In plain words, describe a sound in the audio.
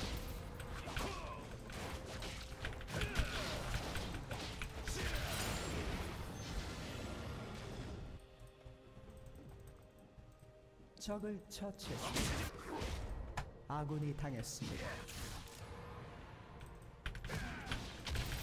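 Fantasy video game spell effects whoosh and crackle.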